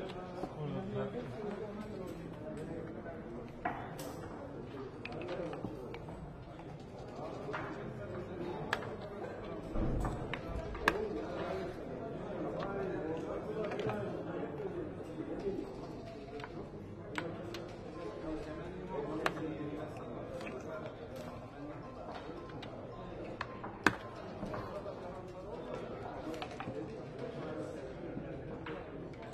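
Checkers click and slide on a wooden board.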